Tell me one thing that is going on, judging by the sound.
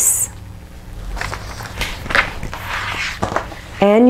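Fabric rustles as it is folded and handled.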